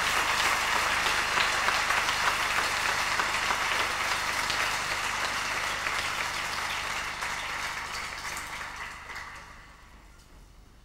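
A large crowd applauds and cheers loudly in a big hall, then fades away.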